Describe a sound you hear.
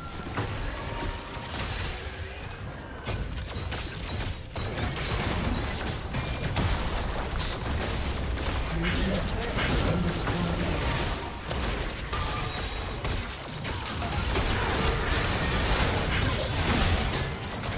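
Game spell blasts, zaps and impacts crackle in a busy fight.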